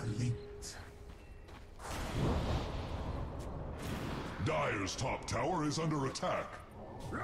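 Game spells whoosh and crackle as fantasy fighters clash.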